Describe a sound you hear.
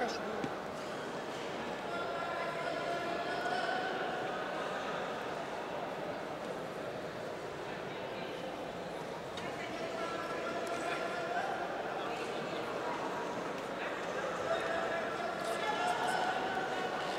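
Spectators shout and cheer.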